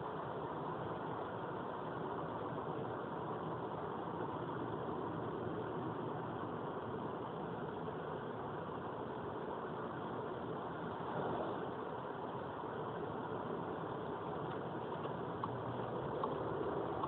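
A car's engine hums steadily as it drives along a highway.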